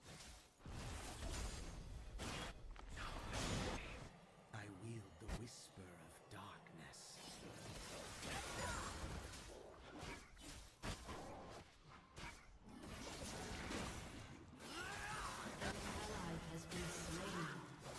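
Game spell effects whoosh and clash.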